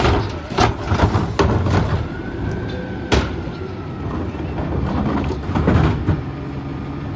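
Plastic trash bins bang and thud.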